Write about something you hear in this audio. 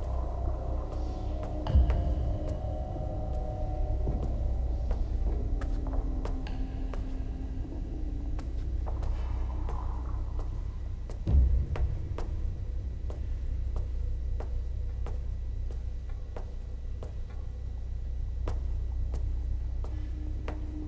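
Footsteps clank steadily on a metal walkway.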